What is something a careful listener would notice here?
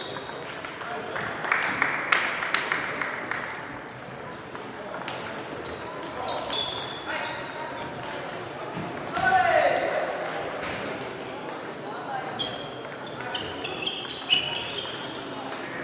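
Table tennis balls click off paddles and tables in a large echoing hall.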